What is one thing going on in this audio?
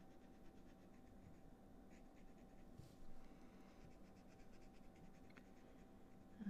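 A marker tip squeaks and rubs in quick strokes on paper, close by.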